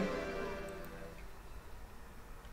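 A short victory jingle chimes and quickly fades.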